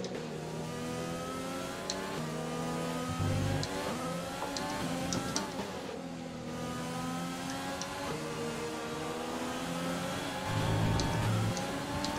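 A racing car engine revs high and shifts through gears.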